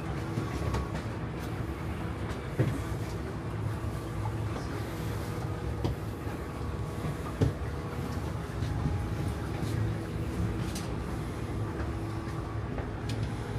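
Footsteps tread on a hard metal floor in a narrow corridor.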